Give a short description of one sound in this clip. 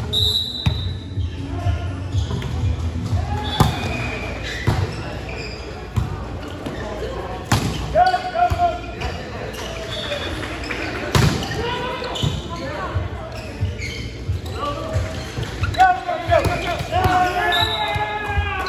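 A volleyball is hit with sharp slaps that echo in a large hall.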